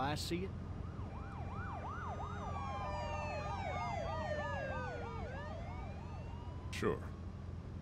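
A police siren wails and glides up and down.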